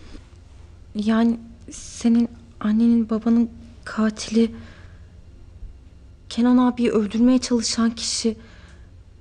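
A young woman speaks tensely and up close.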